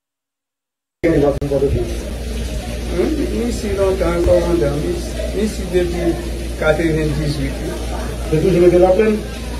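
A middle-aged man speaks close to a clip-on microphone, with emotion.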